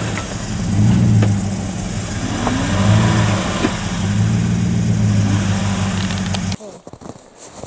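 A truck engine rumbles and revs while straining in snow.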